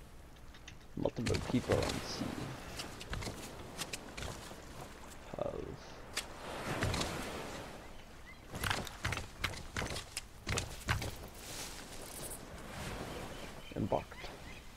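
Footsteps crunch on sand and grass.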